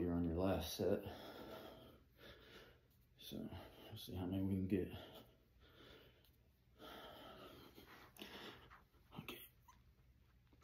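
A middle-aged man speaks with animation, close to the microphone.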